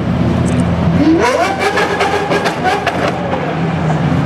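A sports car engine revs sharply, rising in pitch, then drops back.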